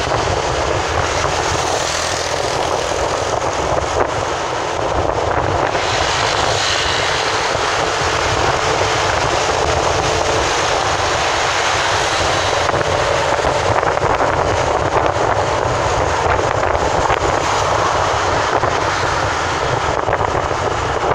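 Wind rushes loudly past an open car window.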